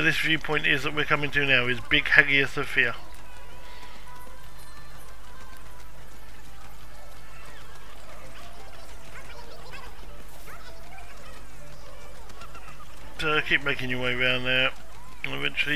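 Footsteps run quickly over cobblestones.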